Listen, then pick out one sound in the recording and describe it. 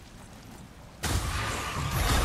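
A man climbs over rocks with scraping and thudding.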